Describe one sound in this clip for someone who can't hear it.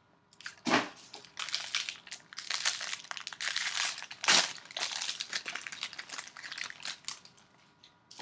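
Foil wrapping crinkles and tears as it is opened.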